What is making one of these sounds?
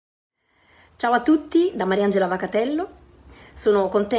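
A woman speaks warmly and with animation into a close microphone over an online call.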